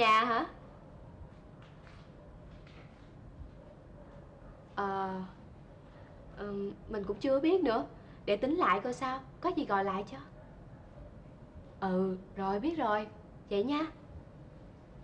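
A young woman talks nearby, calmly and cheerfully.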